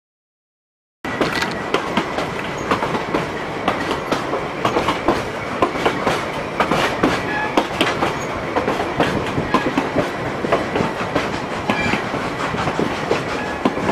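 A narrow-gauge train's wheels clatter and click on the rails.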